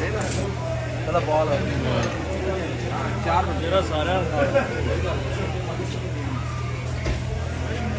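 Metal tongs clink against a ceramic plate.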